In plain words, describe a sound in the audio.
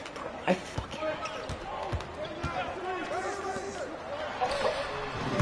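Sneakers squeak on a basketball court.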